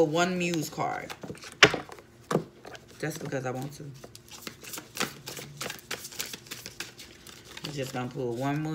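Cards shuffle and riffle.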